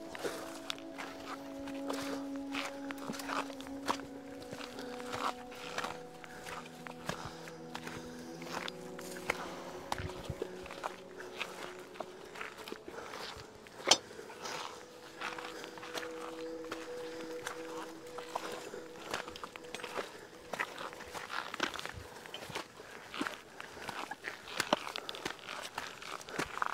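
Footsteps crunch on a dirt and gravel path outdoors.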